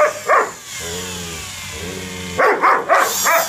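A dog grumbles in a low, drawn-out growl.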